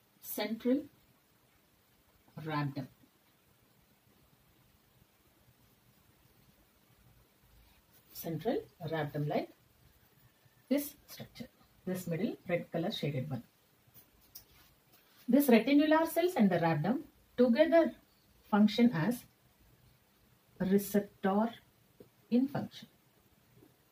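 A young woman speaks calmly, explaining, close to a microphone.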